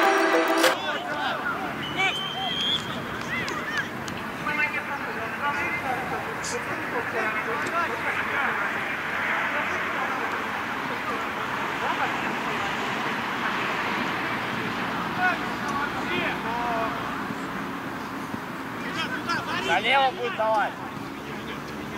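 Young men shout to each other across an open field.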